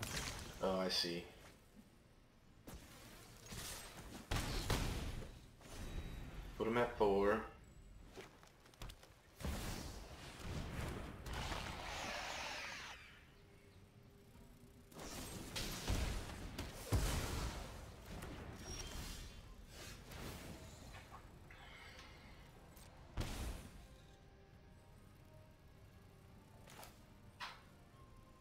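Magical whooshes, chimes and thuds ring out as game cards are played.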